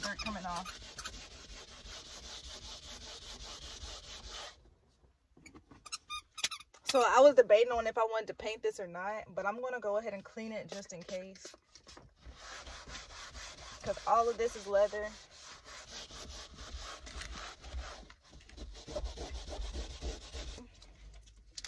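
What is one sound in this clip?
A cloth rubs and squeaks against a car window.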